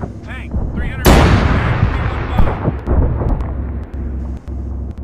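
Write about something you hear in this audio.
A loud explosion booms and rumbles away.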